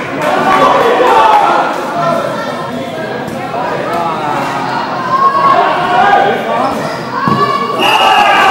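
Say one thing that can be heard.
Children shout and call out excitedly, echoing loudly.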